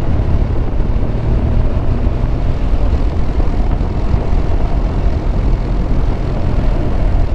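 Wind rumbles loudly against the rider's helmet.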